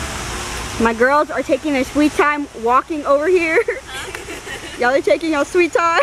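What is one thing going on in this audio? Young women laugh and chatter close by.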